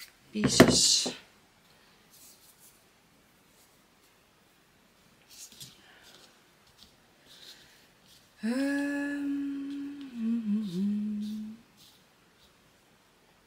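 Thin paper crinkles and rustles between hands.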